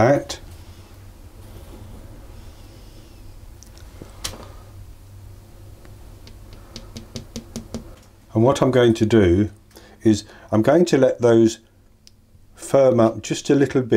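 Chocolate discs are set down softly with light taps on a tray.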